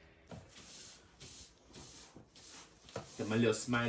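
A broom sweeps across a hard floor in short, brisk strokes.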